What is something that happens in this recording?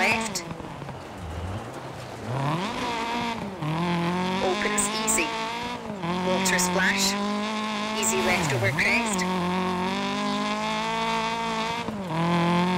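A car engine revs hard, rising and falling with gear changes.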